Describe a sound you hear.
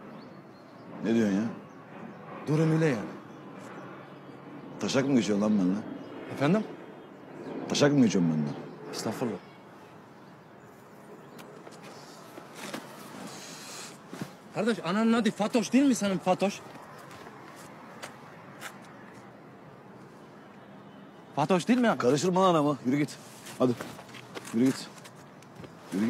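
A middle-aged man talks close by.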